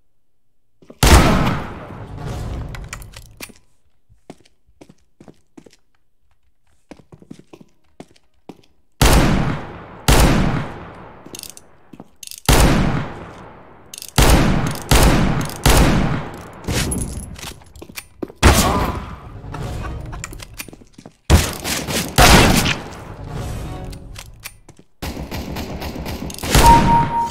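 Loud pistol shots bang out one after another, each with a ringing echo.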